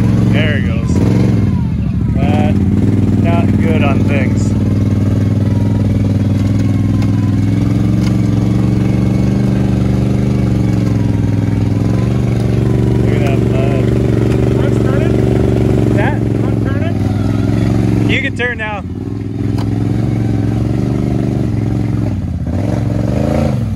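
An all-terrain vehicle engine rumbles loudly at low speed.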